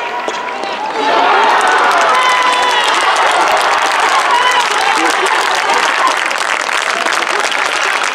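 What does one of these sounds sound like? A crowd cheers loudly in a large echoing hall.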